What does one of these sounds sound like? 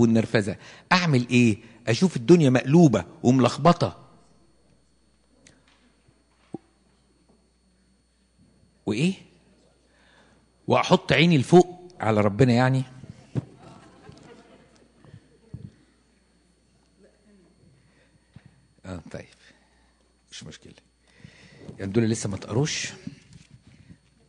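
An elderly man speaks with animation into a microphone, heard through loudspeakers in an echoing hall.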